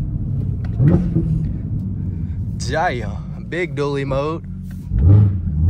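A car engine rumbles deeply at idle and revs briefly.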